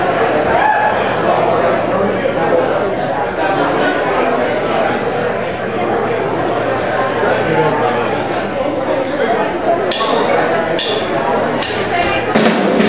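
Drums and cymbals beat steadily.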